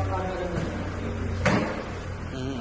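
A car's tailgate swings open with a thud.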